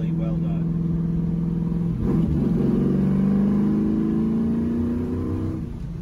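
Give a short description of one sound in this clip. Wind and road noise rush past the car.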